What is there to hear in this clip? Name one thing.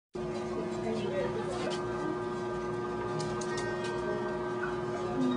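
A crowd of young men chatter.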